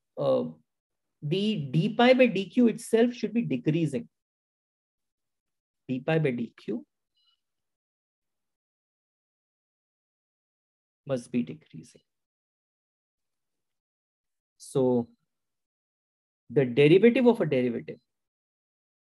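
A man explains calmly with pauses, heard close through a microphone.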